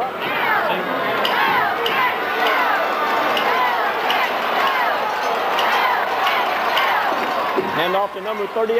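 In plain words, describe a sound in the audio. A crowd cheers loudly from stands far off.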